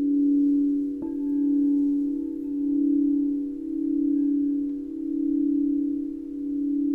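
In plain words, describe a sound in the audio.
A singing bowl is struck once and rings out.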